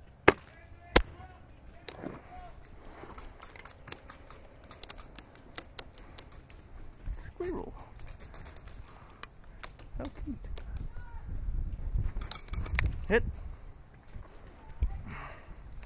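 A paintball marker fires sharp shots.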